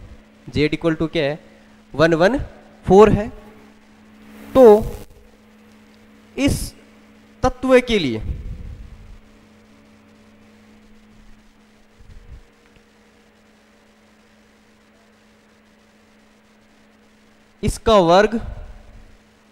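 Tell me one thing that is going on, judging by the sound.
A young man speaks calmly into a headset microphone, with pauses.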